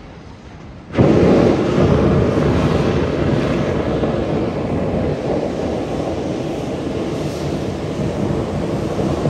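A steam locomotive hisses loudly as it blows off steam.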